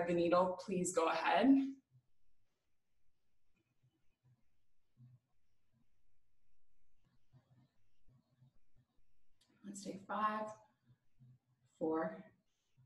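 A young woman speaks calmly, close by, in short phrases with pauses.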